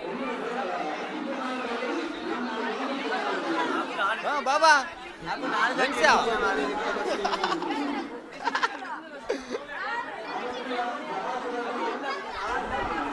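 A crowd of men chatter in many overlapping voices nearby.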